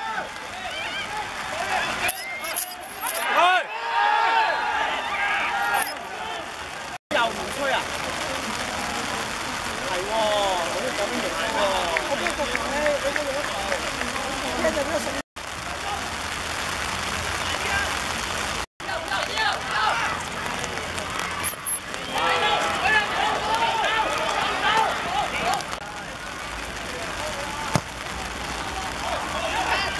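Young men shout and call out outdoors.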